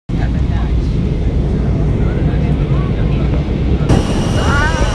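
An airplane engine roars steadily.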